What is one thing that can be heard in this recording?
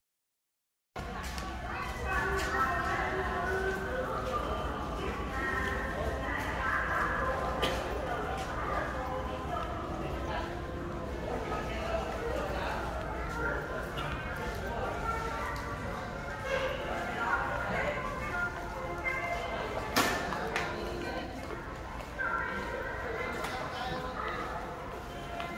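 Several adults talk nearby.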